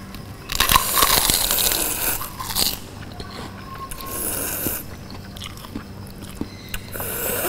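A woman slurps noodles loudly.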